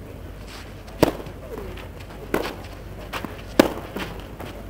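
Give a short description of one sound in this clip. A tennis ball is struck hard with a racket, back and forth.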